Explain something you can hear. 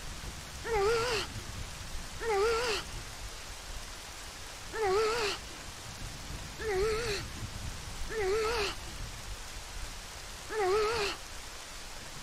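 A small fairy gives a short warbling chime, over and over.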